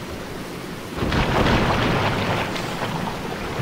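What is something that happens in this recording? A loud splash sounds as something drops into water.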